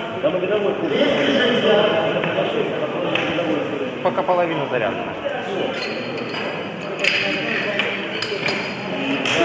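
Several men talk with animation in a large echoing hall.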